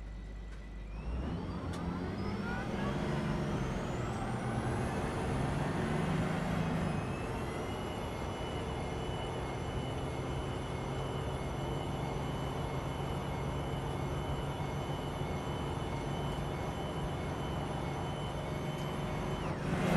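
A car engine revs up with a rising whine and then drones steadily.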